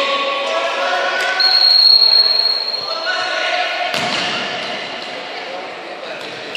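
A crowd of spectators chants and cheers in a large echoing hall.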